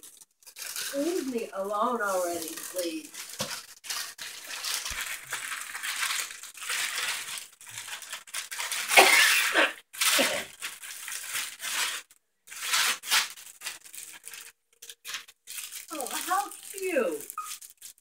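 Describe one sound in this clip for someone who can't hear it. Wrapping paper rustles and crinkles as a gift is unwrapped.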